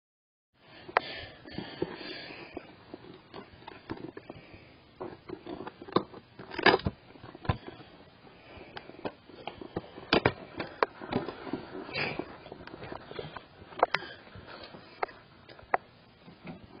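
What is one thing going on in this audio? Hard plastic cases click and knock together.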